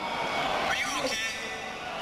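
A bass guitar plays through loud speakers.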